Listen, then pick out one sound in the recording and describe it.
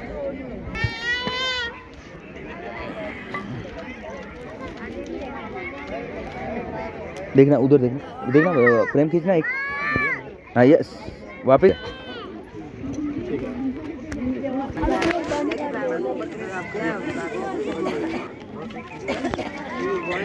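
A crowd of men and women chatters all around.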